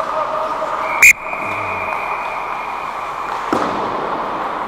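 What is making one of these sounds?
A hockey stick cracks sharply against a puck in a large echoing rink.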